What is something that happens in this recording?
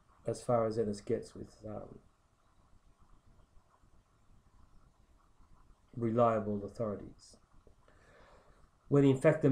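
A middle-aged man speaks close to the microphone, calmly and in short phrases, pausing between them.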